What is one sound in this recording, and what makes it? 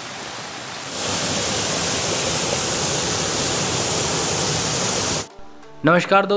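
A river flows steadily with a rushing sound.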